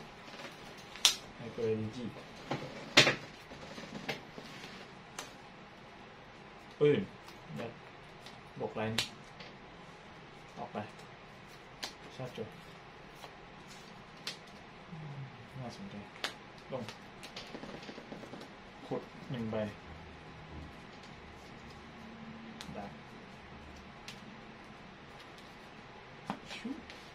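Playing cards slap and slide onto a table close by.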